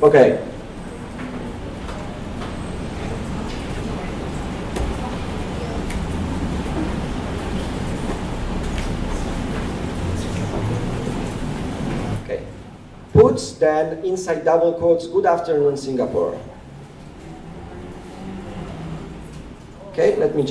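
Laptop keys click as a man types.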